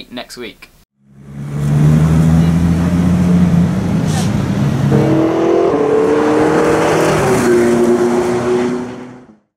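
A sports car engine roars loudly and revs.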